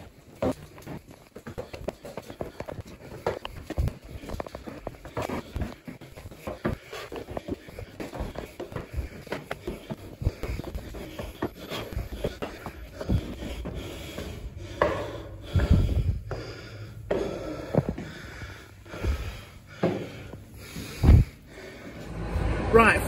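Footsteps thud and echo on concrete stairs.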